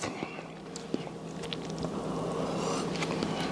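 A man sips a drink up close to a microphone.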